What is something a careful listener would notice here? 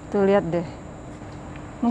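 A plastic wrapper crinkles as a monkey handles it.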